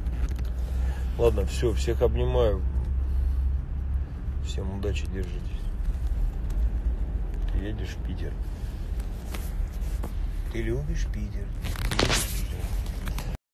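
A man speaks casually and close to a phone microphone.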